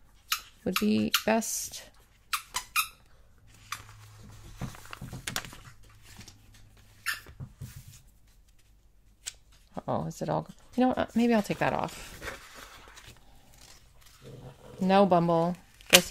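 Paper rustles and crinkles under handling.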